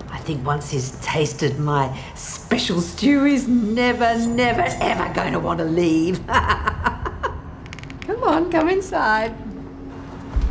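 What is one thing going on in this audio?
An elderly woman speaks slowly and menacingly, close by.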